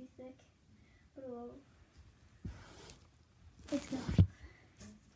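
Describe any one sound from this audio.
A boy talks close by with animation.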